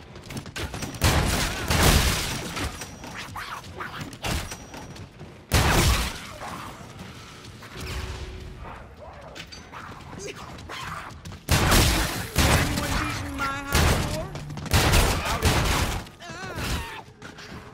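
Gunshots ring out in loud, rapid bursts.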